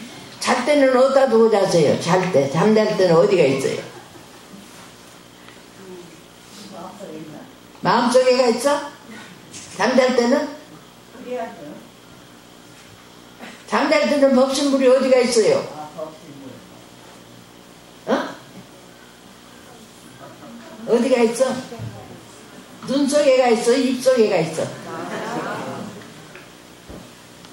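An elderly woman speaks calmly into a microphone, in short phrases with pauses.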